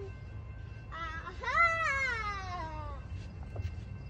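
A young child shrieks loudly.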